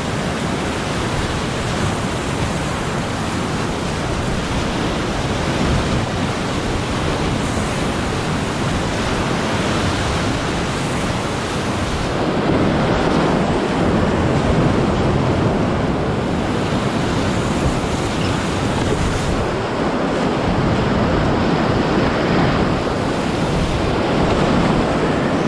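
Whitewater rapids roar loudly and close by.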